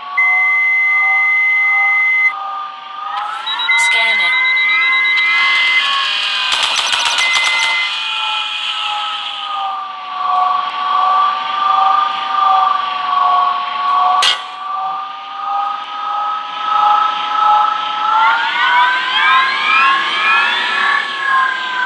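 A spaceship engine hums steadily, rising and falling in pitch.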